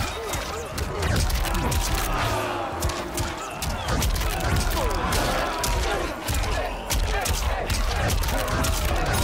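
Punches and kicks land with sharp smacks.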